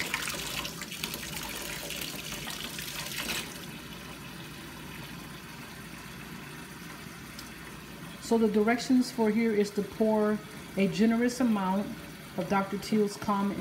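Water runs from a tap and splashes into a sink.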